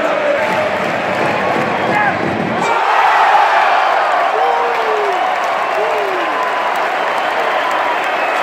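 A crowd of fans sings and chants together.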